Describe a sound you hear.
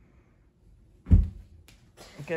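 Bare feet thump onto a carpeted floor.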